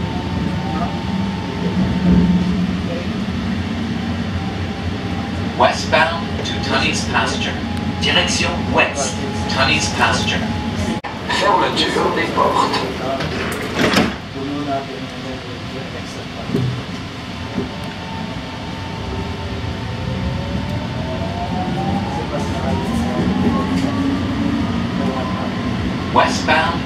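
A light rail train hums and rumbles along the track.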